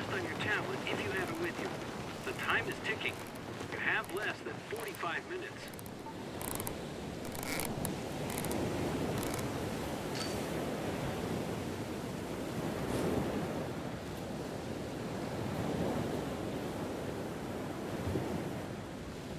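Strong wind rushes past.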